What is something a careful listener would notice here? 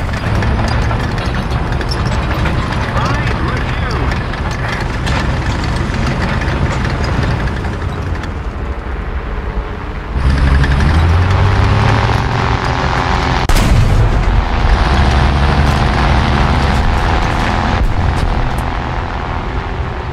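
A tank engine rumbles steadily and revs up.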